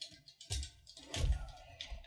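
A burst of flame whooshes.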